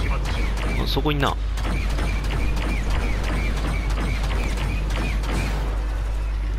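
Laser blasters fire in rapid bursts.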